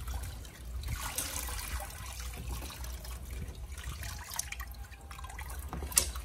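Water sloshes as a knife is moved around in a plastic basket in a tub.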